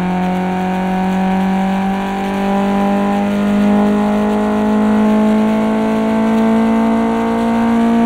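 A car engine drones steadily at high revs, slowly rising in pitch.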